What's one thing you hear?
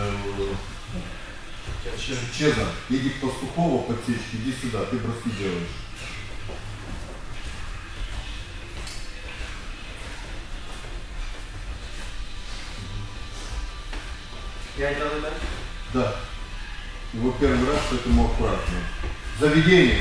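A man speaks calmly, explaining, in an echoing room.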